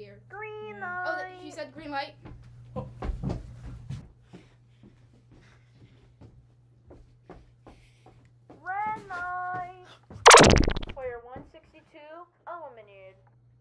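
A teenage boy sings out loudly in a high voice close by.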